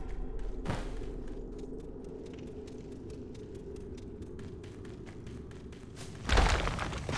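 Footsteps crunch on a hard floor in a quiet echoing space.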